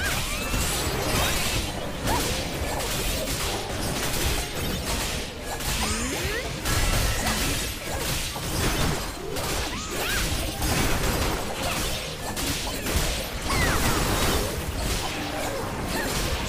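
Game spell effects whoosh and burst rapidly in a fast fight.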